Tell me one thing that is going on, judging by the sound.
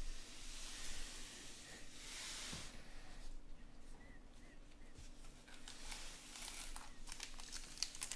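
Hands shuffle and rustle through packs of trading cards.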